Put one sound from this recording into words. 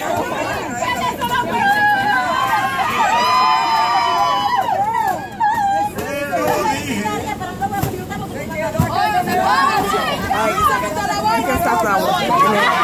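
A crowd of women and men chatter and cheer excitedly outdoors.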